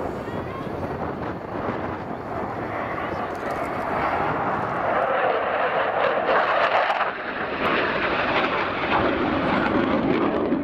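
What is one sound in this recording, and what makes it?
A jet engine roars loudly overhead, rising and falling as the jet banks past.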